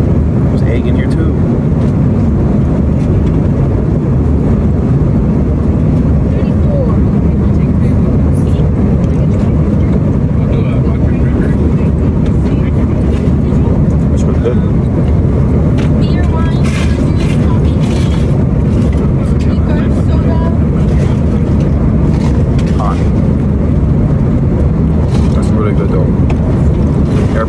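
A steady low roar of aircraft engines.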